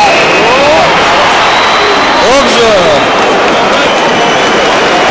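A large stadium crowd roars loudly and steadily.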